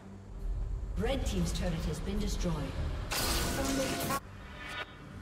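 Magic blasts whoosh and crackle in a fantasy battle game.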